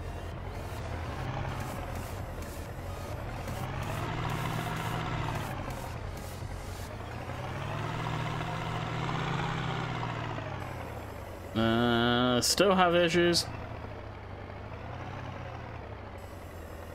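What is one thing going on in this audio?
A loader's diesel engine drones and revs up and down.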